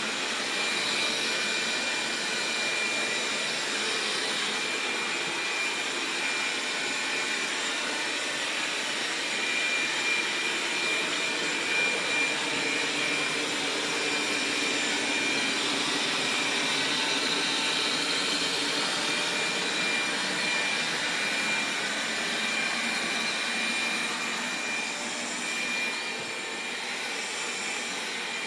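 A robot vacuum cleaner whirs steadily as it drives across the floor.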